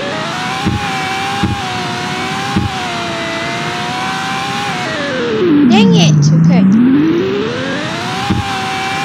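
A video game car engine drones steadily, drops low and then revs back up.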